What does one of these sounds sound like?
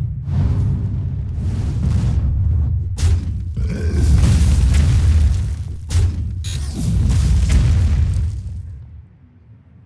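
Video game sound effects crash and burst loudly as cards clash.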